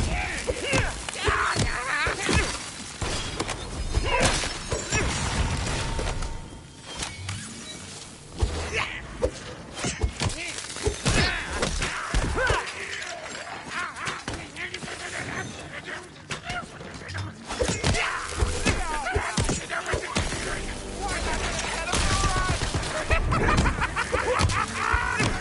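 Blades clang against armour.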